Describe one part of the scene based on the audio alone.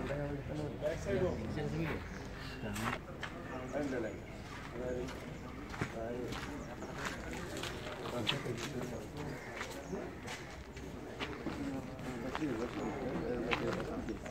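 Several men talk nearby outdoors, their voices overlapping.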